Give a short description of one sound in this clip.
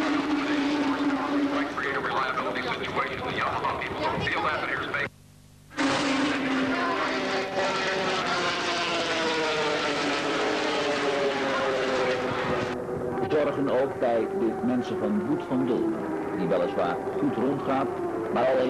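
Motorcycle engines roar and whine as bikes race past nearby.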